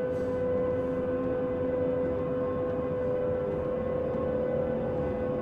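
An electric train motor hums steadily as the train rolls along the rails.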